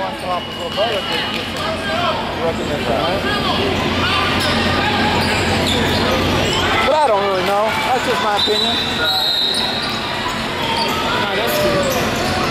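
A crowd of people chatters throughout a large echoing hall.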